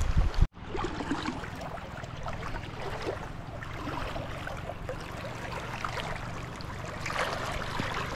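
Water swirls and splashes around a man wading waist-deep.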